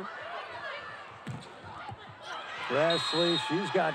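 A volleyball is struck sharply.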